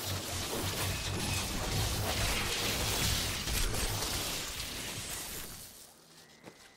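Lightning crackles and buzzes loudly.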